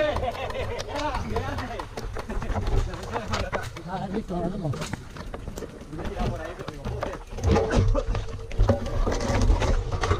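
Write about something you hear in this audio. Bicycles rattle and clatter as they are pushed over rocks.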